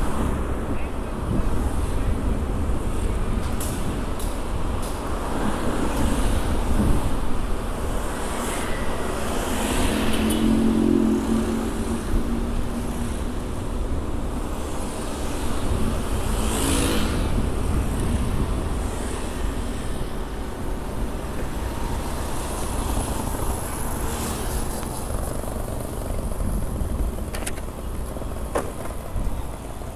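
Cars and motorbikes drive past on a busy road outdoors.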